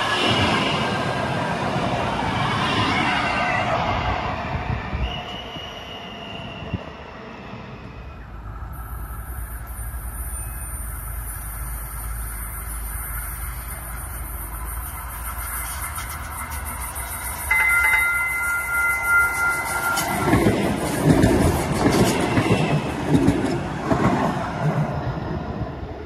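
A light rail train rushes past close by with a loud rumble.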